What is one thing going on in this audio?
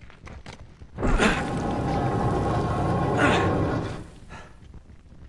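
A heavy stone lid grinds and scrapes as it slides open.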